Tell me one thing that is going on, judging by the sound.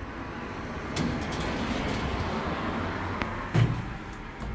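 Elevator doors slide open with a mechanical whir.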